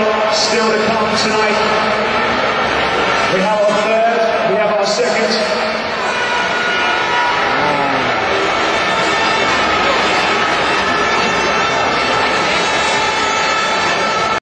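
A large stadium crowd cheers and roars, echoing around the arena.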